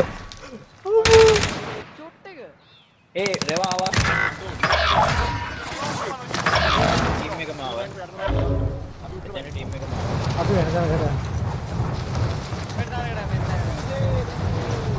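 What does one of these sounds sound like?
A young man talks with animation into a microphone, close by.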